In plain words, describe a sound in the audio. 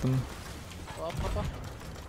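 A ship's cannon fires with a deep boom.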